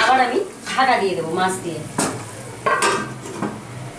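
A metal lid clinks onto a pan.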